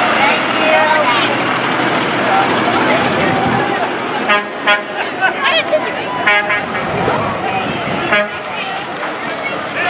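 A crowd of people chatters and calls out along an outdoor street.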